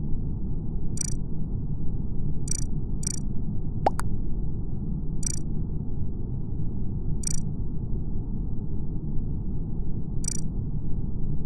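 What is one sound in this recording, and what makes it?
Short electronic clicks sound as buttons are pressed.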